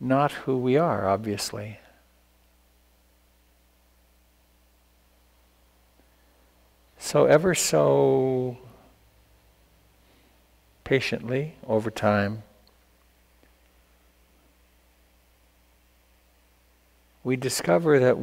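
An elderly man speaks calmly in short phrases with pauses, close to a microphone.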